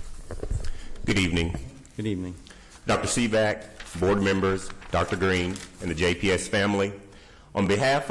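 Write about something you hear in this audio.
A man speaks steadily into a microphone, heard through a loudspeaker in a large room.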